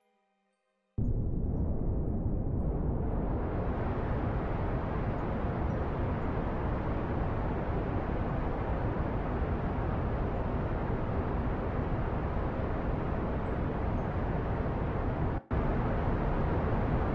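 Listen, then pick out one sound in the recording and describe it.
A rocket engine roars steadily.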